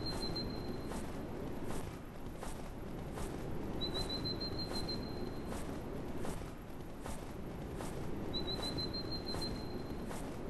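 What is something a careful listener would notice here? A heavy animal's flippers slap and thud steadily on snow.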